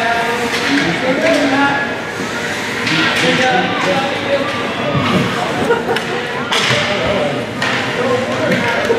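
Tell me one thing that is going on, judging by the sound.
Ice skates scrape and swish across the ice.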